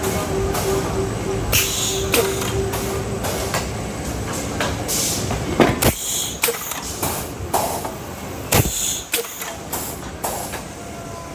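Machine parts clack and knock repeatedly.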